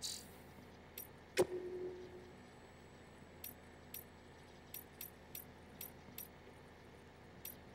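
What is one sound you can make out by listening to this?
Menu clicks tick sharply.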